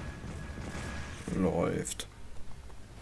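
A magical blast booms with a rushing whoosh.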